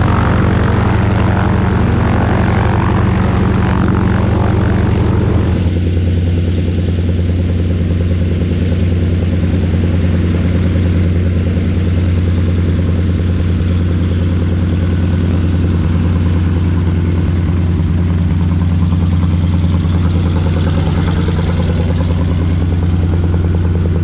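A radial piston engine of a propeller plane drones steadily at idle close by.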